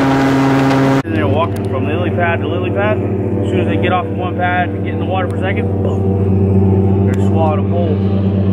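An airboat engine idles with a low, steady rumble.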